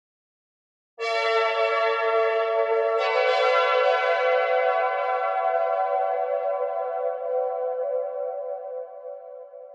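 A bamboo flute plays a slow, sustained melody.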